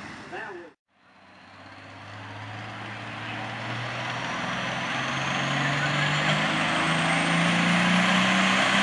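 A pulling tractor's engine revs at the starting line.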